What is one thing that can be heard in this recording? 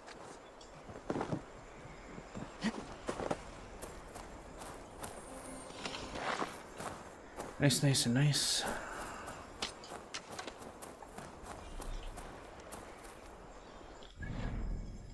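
Footsteps crunch through dry leaves and thump on wooden planks.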